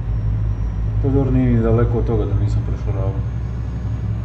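A young man speaks briefly and casually into a microphone.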